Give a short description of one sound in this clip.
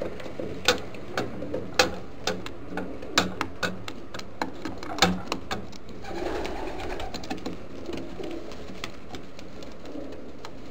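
A pigeon pecks sharply at a wooden floor.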